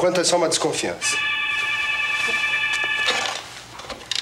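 A telephone rings with a steady electronic trill.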